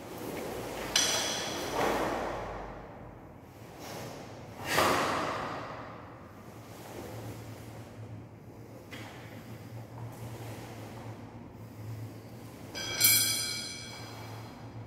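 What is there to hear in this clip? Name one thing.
Metal weapons clink together and ring briefly.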